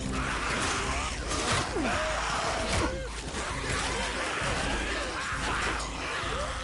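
A horde of zombies growls and snarls up close.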